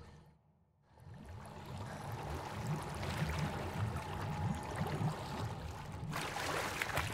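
Water splashes steadily.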